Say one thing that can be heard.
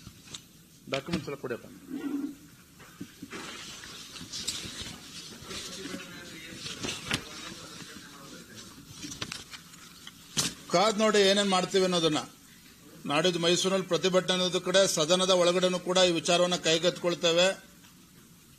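A man speaks steadily into a microphone.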